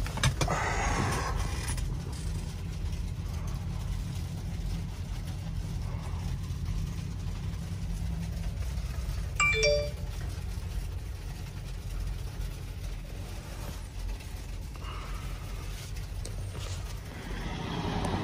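Hail patters on a vehicle's roof and windscreen.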